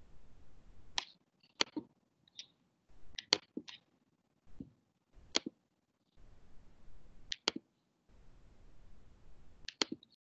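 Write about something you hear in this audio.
A man speaks through a microphone in short, broken bursts.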